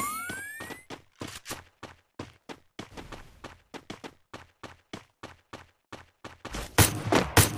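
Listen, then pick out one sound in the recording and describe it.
Footsteps tap quickly and evenly on hard ground.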